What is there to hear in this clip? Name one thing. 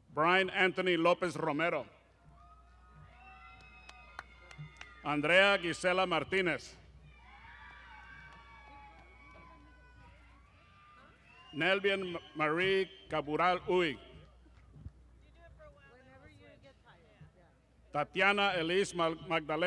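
A man announces over a loudspeaker outdoors, with echo.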